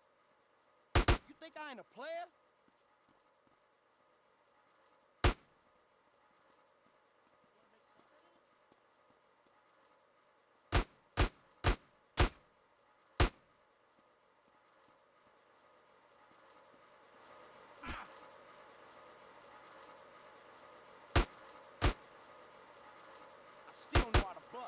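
Gunshots ring out sharply, one at a time.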